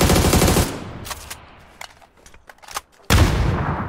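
A rifle is reloaded with metallic clicks and clacks.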